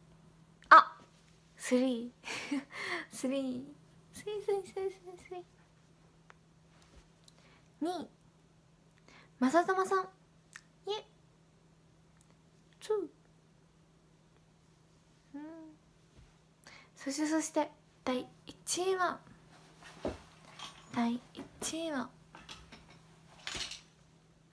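A young woman talks casually and playfully, close to a phone microphone.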